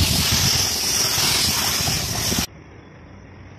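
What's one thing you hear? A spray gun hisses loudly and steadily.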